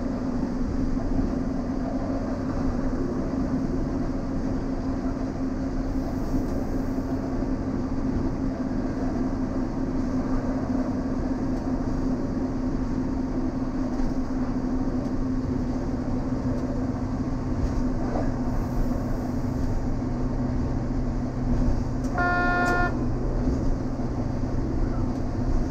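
A diesel railcar engine drones as the train travels.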